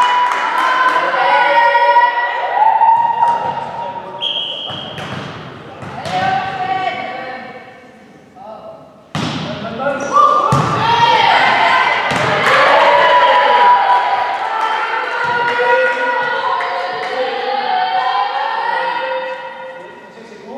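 Young women shout and cheer in a large echoing hall.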